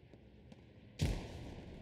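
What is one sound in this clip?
A loud explosion booms nearby.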